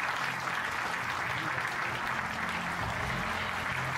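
A small jazz band plays live, with double bass, piano and drums.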